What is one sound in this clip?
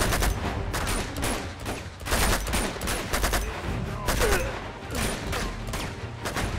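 Rifles fire in rapid bursts, with sharp cracks.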